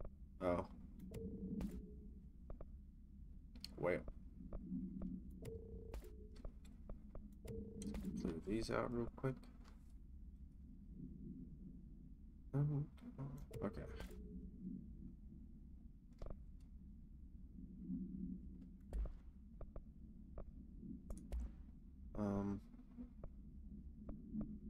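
Short interface clicks sound as menu items are selected.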